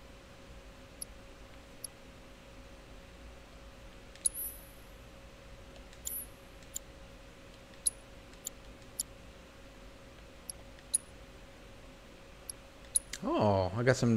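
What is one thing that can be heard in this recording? Short high menu blips sound again and again.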